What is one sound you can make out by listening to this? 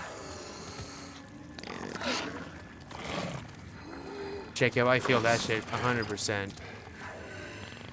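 A man grunts and groans in strain, close by.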